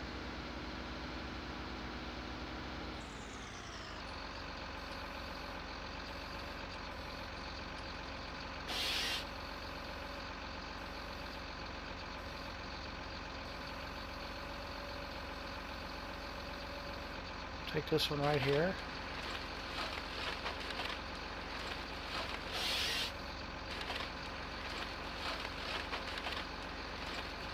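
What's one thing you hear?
A harvester's hydraulic arm whines as it moves.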